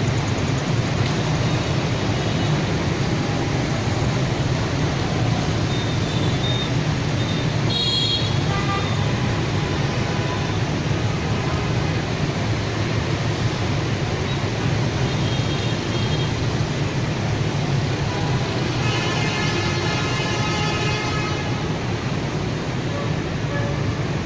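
Dense city traffic of motorbikes and cars roars steadily outdoors.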